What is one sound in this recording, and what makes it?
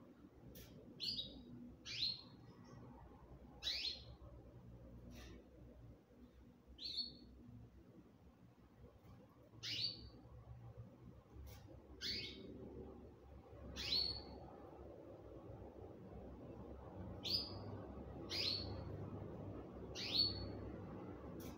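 A small bird chirps in short, sharp calls again and again, close by.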